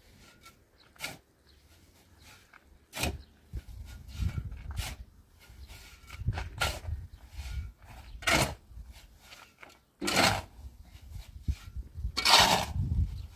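A shovel scrapes through dry mix.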